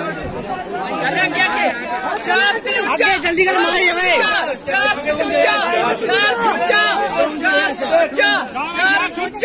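Young men cheer and shout loudly.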